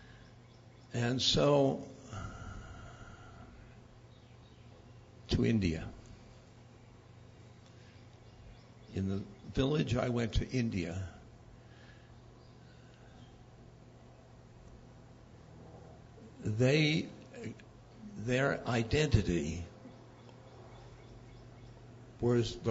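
An elderly man speaks slowly and calmly into a microphone, with long pauses.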